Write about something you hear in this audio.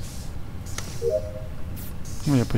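A short electronic chime rings.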